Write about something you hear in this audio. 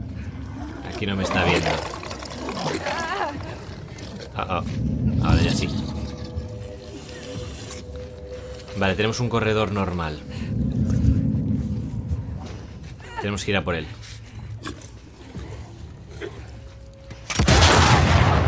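A man breathes heavily and rasps through a gas mask.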